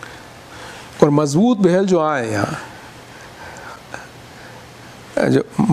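An elderly man speaks slowly and melodically into a microphone.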